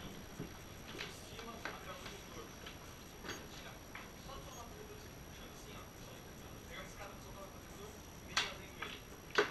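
Equipment knocks and clatters nearby as it is handled.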